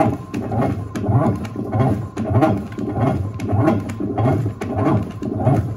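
A washing machine agitator churns and sloshes water in a steady rhythm.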